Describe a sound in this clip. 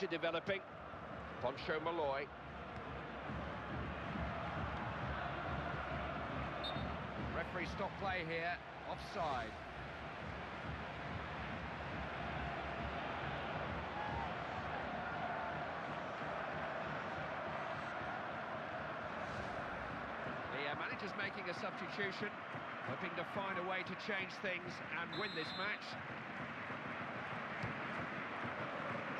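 A large stadium crowd roars and murmurs steadily.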